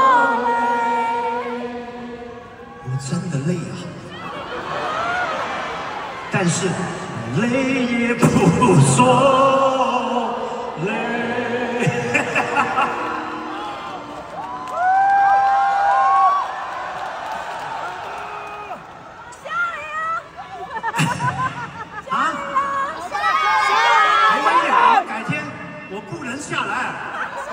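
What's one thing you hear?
A man talks animatedly through a microphone in a large hall.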